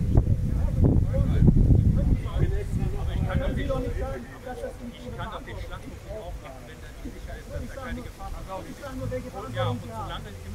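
A middle-aged man speaks calmly to a crowd outdoors.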